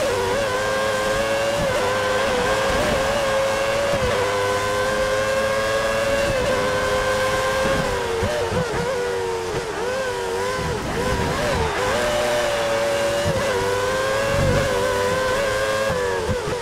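A racing car engine whines at high revs, dropping and rising in pitch as it shifts gears and brakes.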